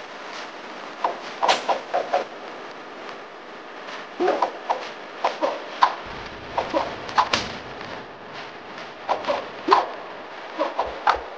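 Punches and kicks land with sharp thuds in quick bursts.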